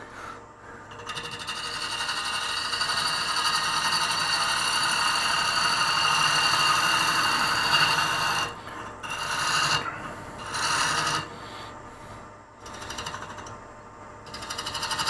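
A chisel scrapes and hisses against spinning wood.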